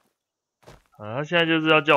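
A young man speaks animatedly, close to a microphone.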